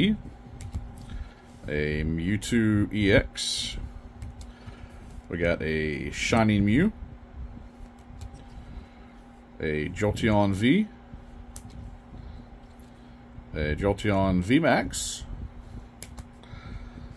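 A plastic card sleeve rustles softly in a hand.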